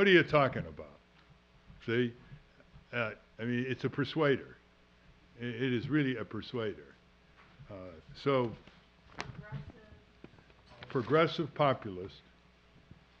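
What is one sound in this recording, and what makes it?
An elderly man speaks with animation into a microphone, in phrases broken by pauses.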